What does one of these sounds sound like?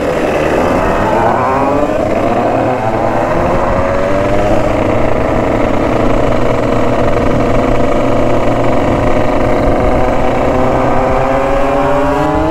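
Another motorcycle engine revs nearby.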